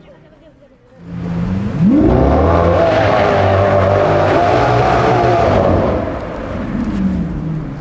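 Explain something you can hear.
A Lamborghini Aventador V12 revs hard as it drives back toward the listener.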